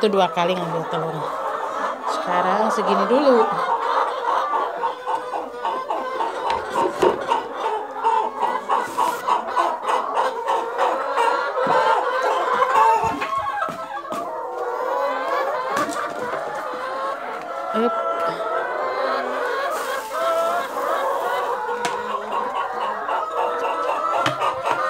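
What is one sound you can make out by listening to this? Many hens cluck and squawk close by.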